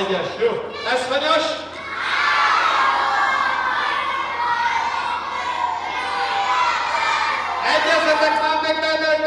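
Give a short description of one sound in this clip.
A crowd of young children shout and chatter excitedly in a large echoing hall.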